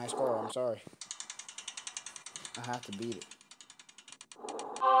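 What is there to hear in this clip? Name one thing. A game's prize wheel ticks rapidly as it spins.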